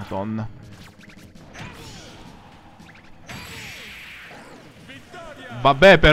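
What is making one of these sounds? Cartoonish fighting sound effects pop and whoosh.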